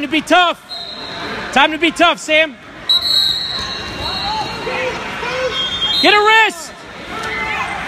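Spectators shout loudly in sharp bursts.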